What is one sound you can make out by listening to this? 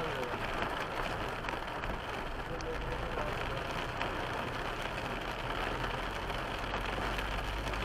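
Tyres hiss along a wet road.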